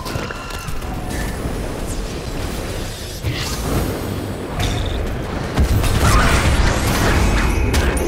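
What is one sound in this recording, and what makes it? Magical spell effects whoosh and crackle in a busy fight.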